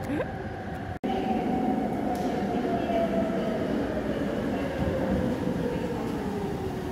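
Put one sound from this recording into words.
A train rolls into a station and slows with a falling whine.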